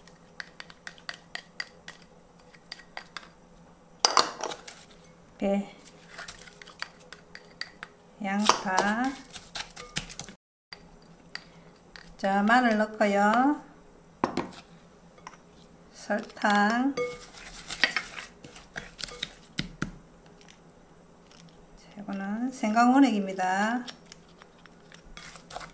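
Food drops softly into a glass bowl.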